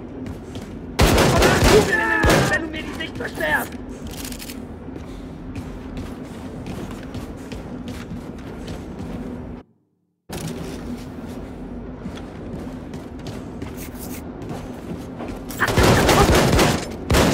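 A heavy gun fires loud rapid bursts.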